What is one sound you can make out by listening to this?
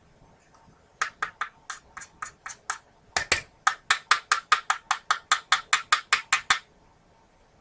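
A small hand tool taps rapidly.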